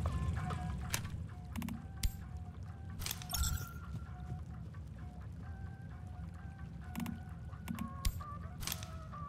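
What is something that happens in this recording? Short interface clicks sound as items are moved around.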